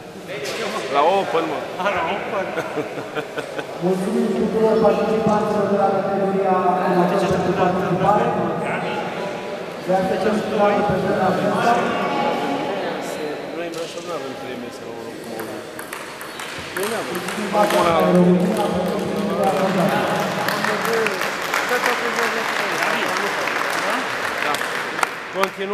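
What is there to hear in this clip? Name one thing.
A man speaks into a microphone over loudspeakers in a large echoing hall, announcing calmly.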